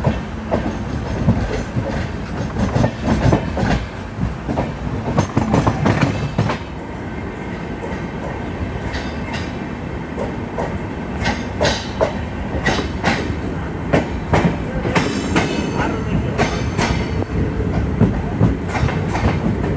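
Wind rushes past an open train door.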